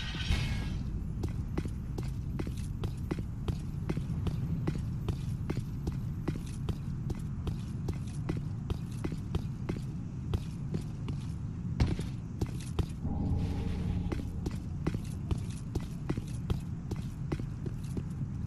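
Armoured footsteps clank quickly and steadily on a stone roof.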